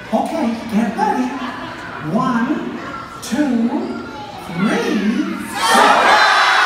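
A high, cartoonish voice speaks with animation over loudspeakers in a large hall.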